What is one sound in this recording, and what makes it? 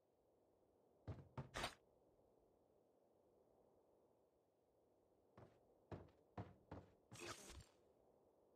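Gear clicks and rattles as items are picked up.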